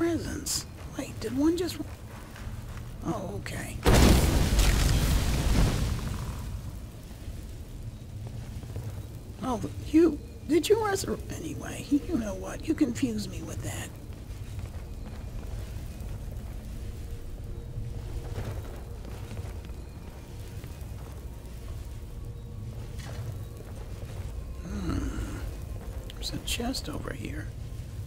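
Magic flames crackle steadily in both hands.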